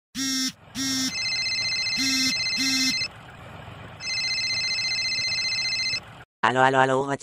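A mobile phone rings with a beeping tone.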